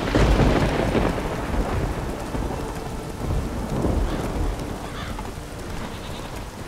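Horse hooves thud rhythmically on a dirt path.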